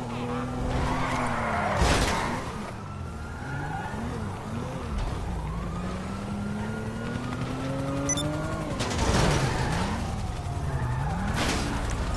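A car engine revs and hums as a car drives.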